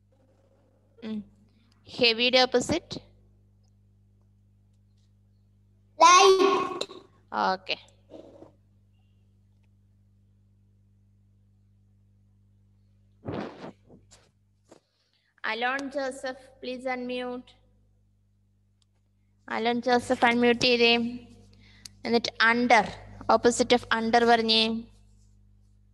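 Children speak in short, high bursts through an online call.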